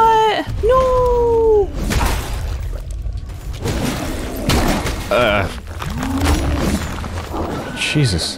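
A monster snarls and growls.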